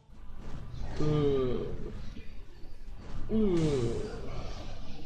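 A giant monster roars.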